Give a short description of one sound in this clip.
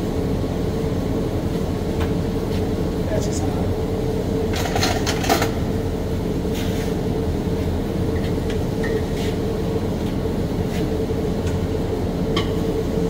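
A ventilation fan hums steadily.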